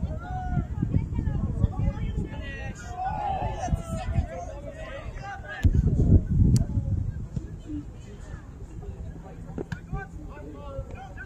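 Young men shout to each other across an open field, far off.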